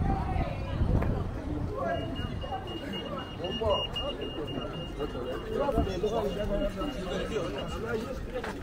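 Young people chatter and talk nearby outdoors.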